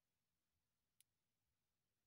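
A finger taps on a glass touchscreen.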